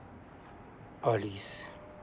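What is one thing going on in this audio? An elderly man speaks briefly in a low voice close by.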